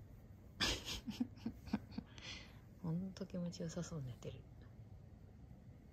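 A hand strokes a dog's fur softly.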